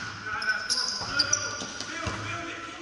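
Trainers squeak sharply on a hard sports floor.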